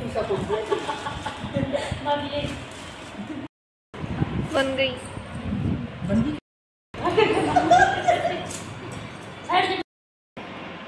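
A woman talks cheerfully close by.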